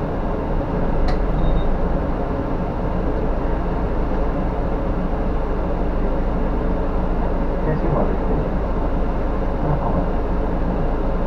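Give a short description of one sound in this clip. Tyres roll over the road with a low rumble.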